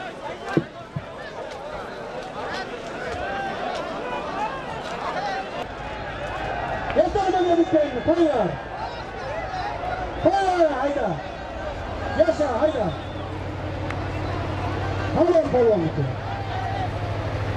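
A large outdoor crowd of men murmurs and chatters.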